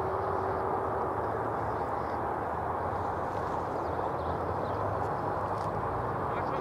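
Footballers shout faintly in the distance across an open field.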